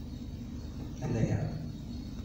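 An older man speaks briefly through a microphone.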